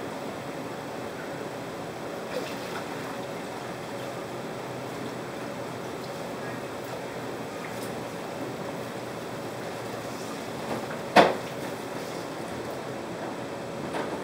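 Items knock and rattle inside an open refrigerator.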